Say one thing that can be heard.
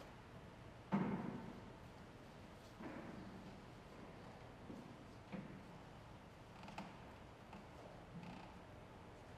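Footsteps and knocks echo across a large hall.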